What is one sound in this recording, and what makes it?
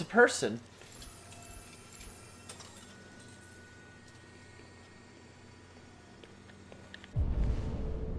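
A robotic arm whirs as it moves.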